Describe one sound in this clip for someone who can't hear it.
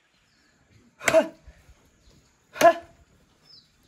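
A wooden pole thuds heavily into the ground.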